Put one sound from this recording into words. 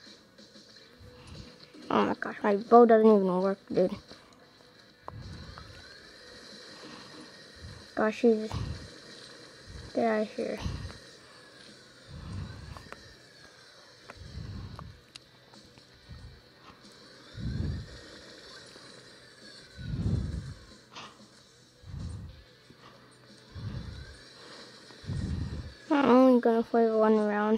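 Video game sound effects play from a small tablet speaker.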